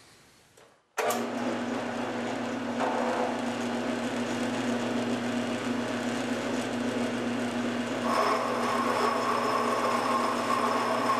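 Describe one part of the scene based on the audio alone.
A milling machine motor hums steadily.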